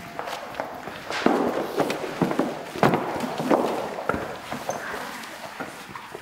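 Children's footsteps thump on a wooden stage in a large echoing hall.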